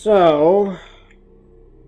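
A young man makes a loud, wavering singsong sound close to a microphone.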